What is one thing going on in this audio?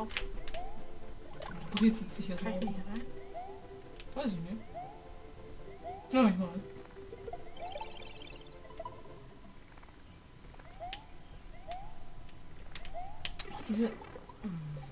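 Video game music plays with a bouncy tune.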